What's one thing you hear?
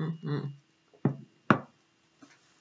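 A glass clinks on a hard surface.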